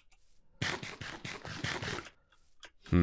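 Crunchy chewing sounds repeat quickly as food is eaten.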